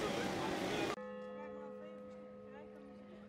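A clock tower bell chimes.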